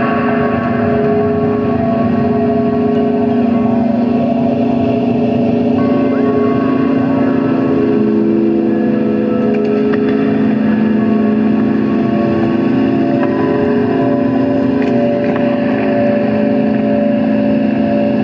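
Electronic drones and tones from a synthesizer hum and shift steadily.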